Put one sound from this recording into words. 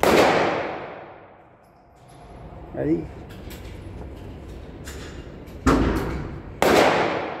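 A rifle fires loud shots that boom and echo.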